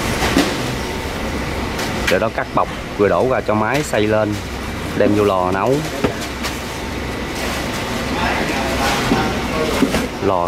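Plastic baskets knock and clatter as men handle them.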